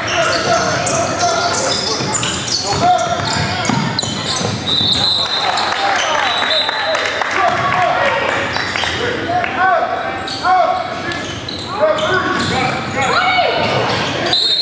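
A crowd of spectators and young players chatter and call out.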